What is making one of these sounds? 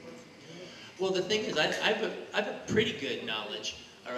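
A man speaks with animation into a microphone, heard over a loudspeaker in a large room.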